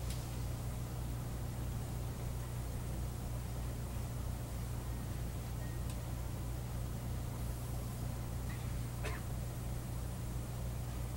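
A live rock band plays loudly in an echoing room.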